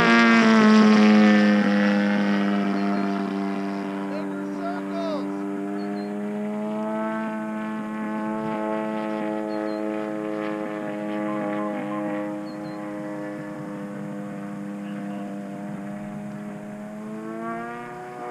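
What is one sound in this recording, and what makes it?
A small plane's engine drones overhead, dropping slightly in pitch and slowly fading.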